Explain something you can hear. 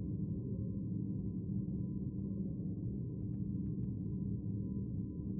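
A low murmur of people fills a large room.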